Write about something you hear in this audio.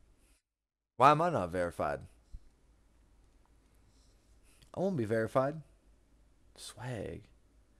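A man speaks with animation into a close microphone in short bursts.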